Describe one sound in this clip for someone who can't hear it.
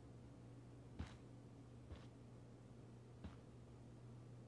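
Footsteps thud slowly on wooden stairs.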